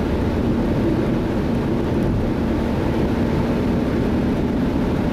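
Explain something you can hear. A car's engine hums steadily as it drives along a highway.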